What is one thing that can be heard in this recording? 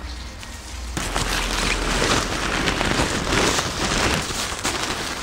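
Inflatable fabric rustles as a man handles it.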